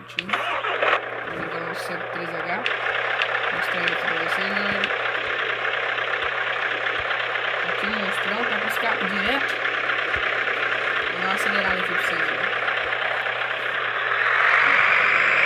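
A truck engine idles steadily.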